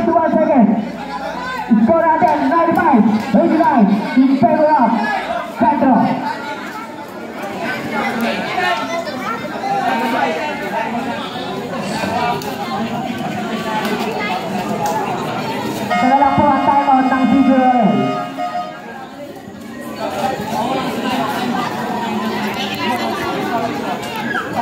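A crowd chatters and shouts outdoors nearby.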